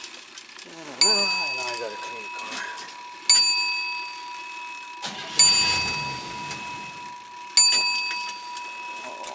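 A car's warning chime dings over and over.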